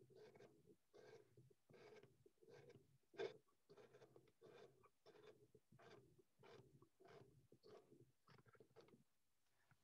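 A knife scrapes and shaves wood in quick, soft strokes.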